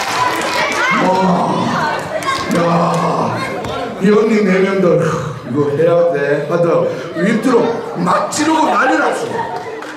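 A man speaks animatedly close to the microphone.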